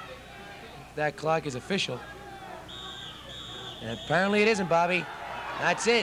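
A crowd of spectators cheers from the sidelines outdoors.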